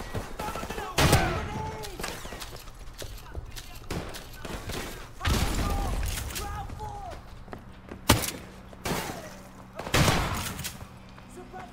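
Gunshots ring out in short, loud bursts with echoing reverberation.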